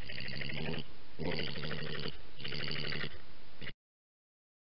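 Badgers chitter and squeal close by.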